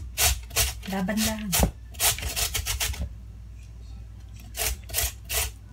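A vegetable scrapes rhythmically against a metal grater.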